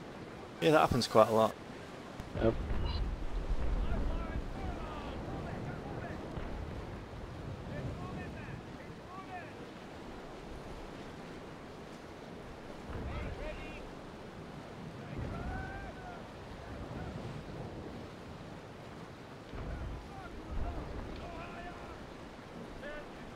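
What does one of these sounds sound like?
Waves wash against a sailing ship's hull at sea.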